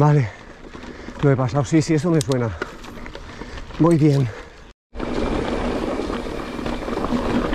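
Bicycle tyres crunch over a dirt and gravel trail.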